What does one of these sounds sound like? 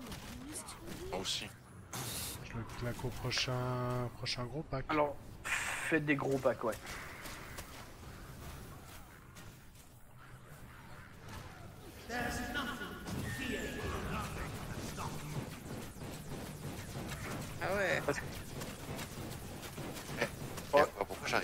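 Magic blasts crackle and burst in a fast fight.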